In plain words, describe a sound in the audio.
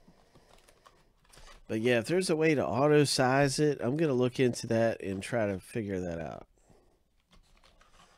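A cardboard box lid scrapes and flaps open.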